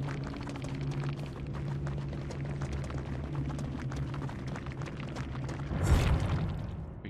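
A man talks into a headset microphone.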